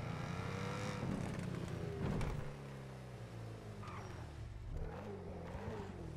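A sports car engine roars steadily at speed.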